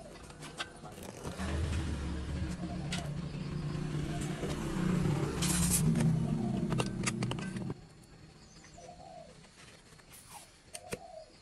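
A grease gun clicks and clacks as its parts are handled and screwed together.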